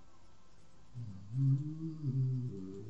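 A large dragon roars loudly.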